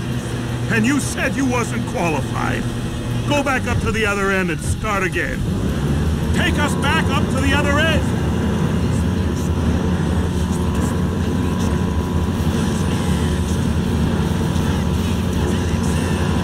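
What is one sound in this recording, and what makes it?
A crane's motor hums steadily.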